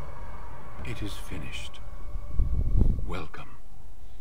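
A man speaks gruffly, close by.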